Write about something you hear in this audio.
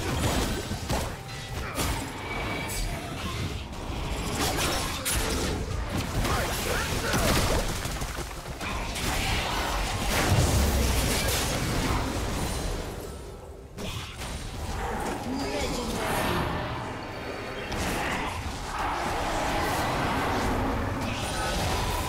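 Magic blasts and clashing effects crackle and whoosh in a fast fight.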